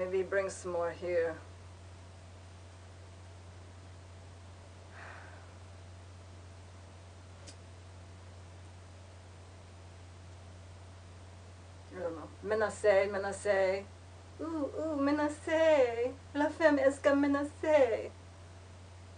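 A young woman speaks close by with animation, pausing between remarks.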